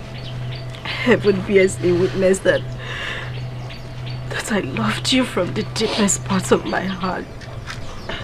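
A woman speaks pleadingly, close by.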